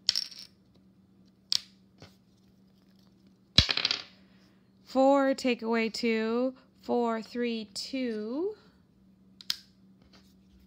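A plastic counter taps onto a board.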